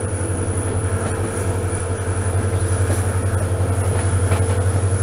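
A diesel locomotive engine throbs loudly and steadily, growing a little louder.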